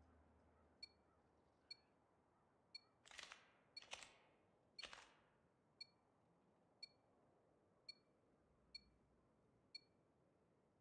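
Electronic countdown beeps sound once a second.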